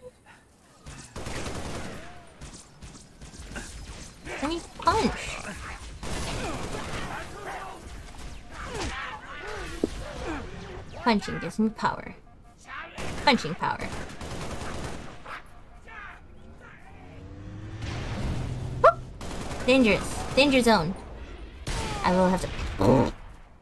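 A young woman talks with animation into a microphone, close up.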